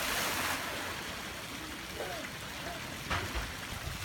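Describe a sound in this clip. A child splashes while swimming.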